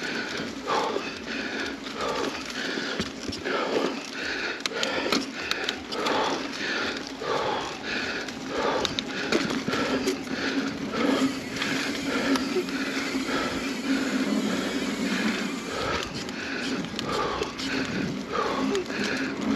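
Bicycle tyres crunch and rumble over a dirt trail.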